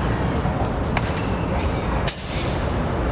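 A bat cracks sharply against a baseball.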